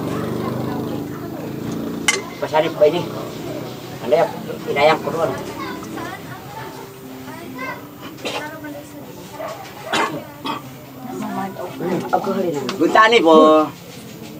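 Several adult men and women talk casually close by.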